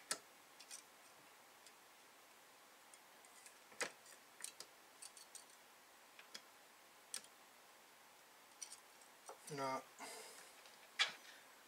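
A small metal tool clicks and taps against electronic parts.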